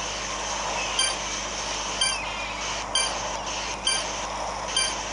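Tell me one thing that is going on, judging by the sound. Short electronic chimes ring out as points are collected.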